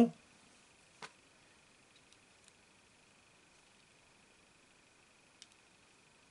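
Small plastic parts click softly as hands fit them together.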